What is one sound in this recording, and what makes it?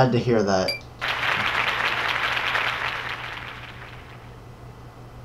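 An audience applauds loudly, then the clapping fades away.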